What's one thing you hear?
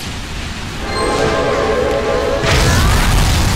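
A game announcer's chime rings out to start a round.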